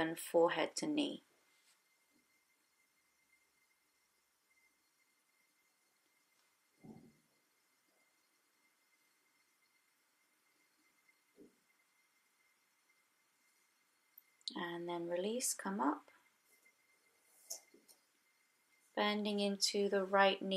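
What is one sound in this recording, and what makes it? A young woman speaks calmly and softly, as if guiding a stretch.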